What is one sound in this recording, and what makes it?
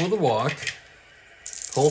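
Dice rattle in a hand.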